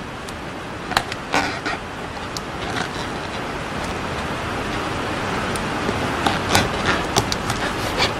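A steady hiss of air fills a balloon.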